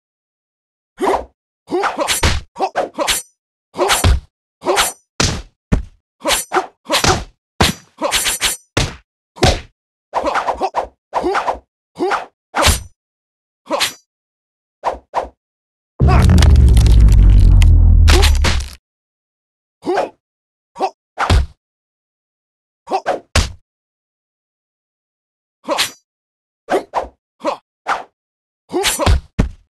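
Swords clash in quick bursts.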